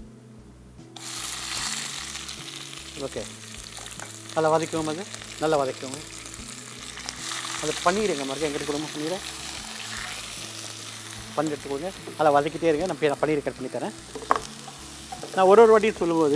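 Batter sizzles loudly in a hot pan.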